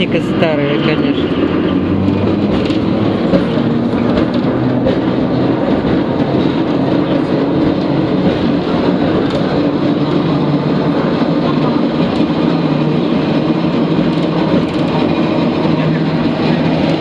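A bus engine rumbles and hums steadily from inside the bus.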